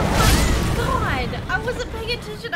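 A loud fiery explosion booms and crackles.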